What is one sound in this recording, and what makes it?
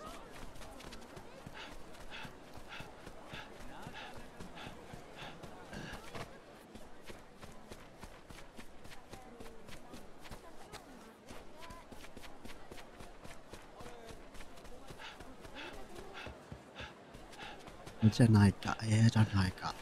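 Footsteps run quickly over hard ground in a steady rhythm.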